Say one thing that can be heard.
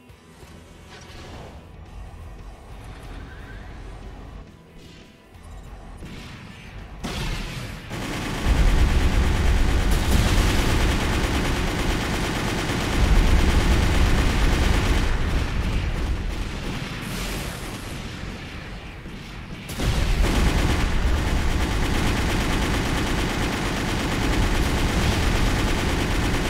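Jet thrusters roar as a robot flies.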